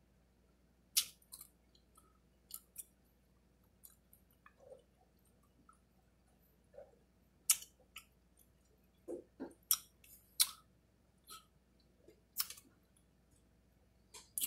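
A woman smacks her lips and chews softly, close by.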